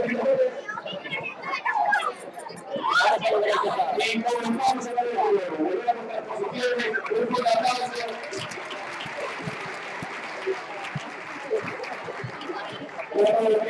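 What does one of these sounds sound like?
A crowd of children and adults chatters and calls out nearby.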